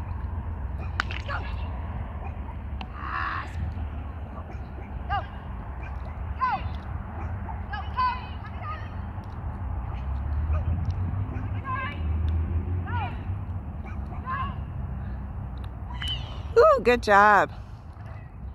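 A man calls out short commands to a dog from a distance.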